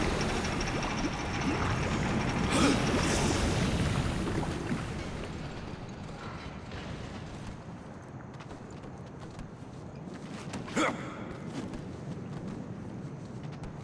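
A game character's hands thud against wooden beams and stone as it climbs.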